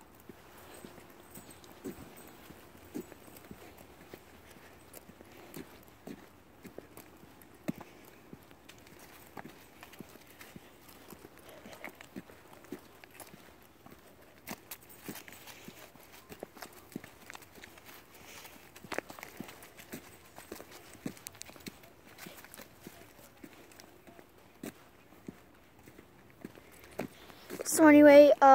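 Footsteps tap on a paved path.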